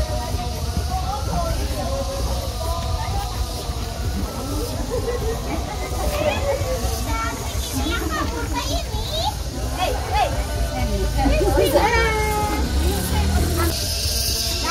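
Several women chat and call out nearby.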